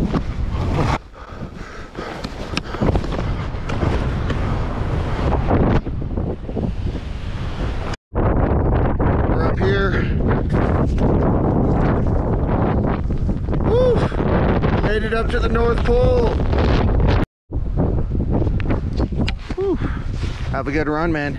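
Strong wind buffets the microphone.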